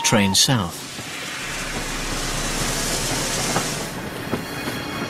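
A steam locomotive lets off a loud hiss of steam.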